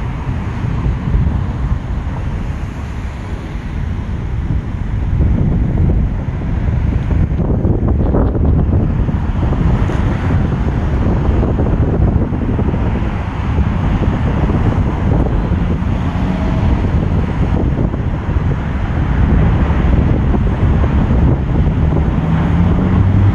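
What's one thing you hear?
Wind blows across the microphone outdoors.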